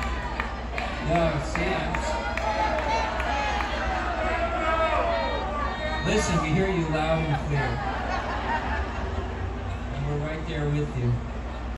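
A man speaks through loudspeakers to a crowd.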